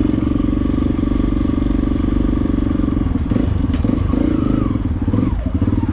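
A dirt bike engine idles.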